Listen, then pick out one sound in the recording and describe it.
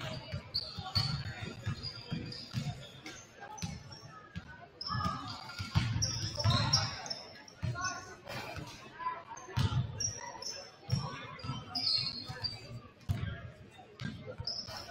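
A basketball bounces on a hard wooden floor in a large echoing gym.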